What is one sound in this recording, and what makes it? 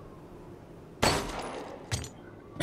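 A handgun fires a loud shot.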